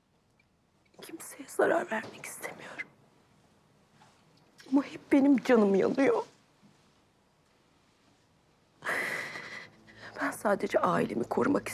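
A woman speaks tearfully, close by.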